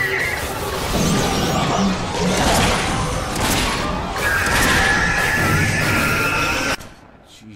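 Electric bolts crackle and buzz.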